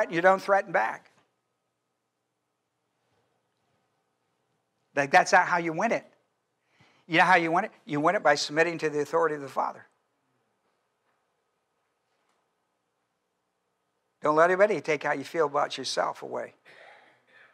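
An elderly man speaks with animation through a microphone, pausing between phrases.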